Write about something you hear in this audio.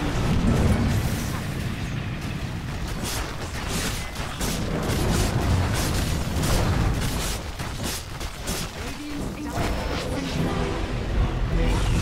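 Weapons clash repeatedly in a game fight.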